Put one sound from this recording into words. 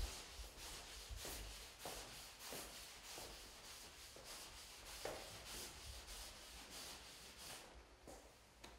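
A hand sanding sponge rubs over drywall.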